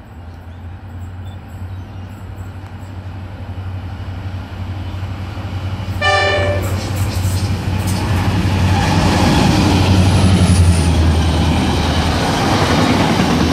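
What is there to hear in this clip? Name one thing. A diesel locomotive engine rumbles deeply, growing louder as it approaches.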